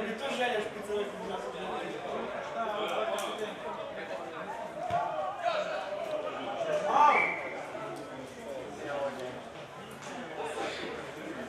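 Several men talk and call out nearby outdoors.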